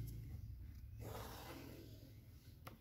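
A pen scratches along paper.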